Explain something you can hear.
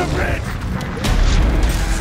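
Fire roars.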